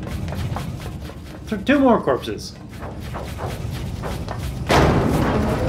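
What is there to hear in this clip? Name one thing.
Footsteps clank quickly on a metal floor.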